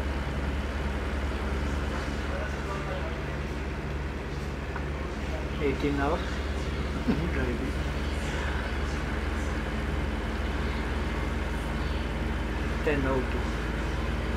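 A truck's diesel engine rumbles steadily while driving.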